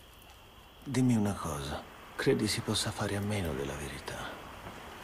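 A man speaks in a low, quiet voice.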